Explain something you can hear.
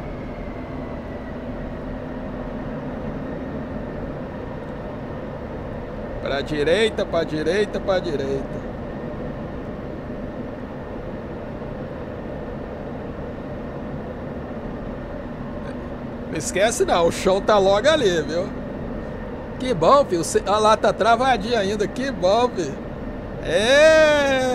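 A jet fighter's engine hums steadily, heard from inside the cockpit.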